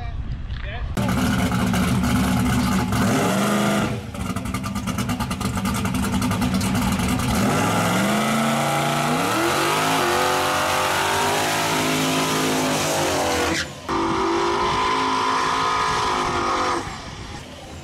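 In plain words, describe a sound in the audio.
Tyres squeal and screech as they spin on the track.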